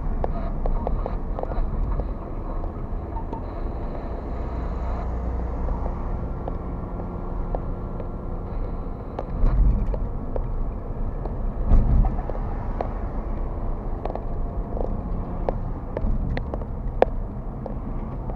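A car's engine hums steadily as it drives along a road.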